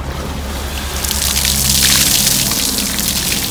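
Water pours and splashes heavily onto hard ground.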